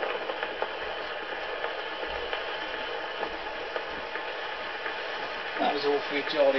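An old gramophone plays a scratchy, crackling record.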